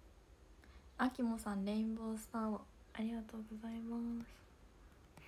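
A young woman speaks close to a microphone in a bright, lively voice.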